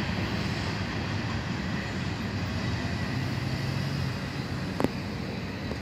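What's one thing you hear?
A car engine hums as a vehicle pulls slowly out onto the road.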